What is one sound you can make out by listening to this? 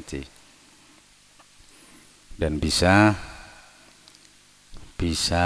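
A man chants through a microphone, in loud drawn-out phrases with pauses between them.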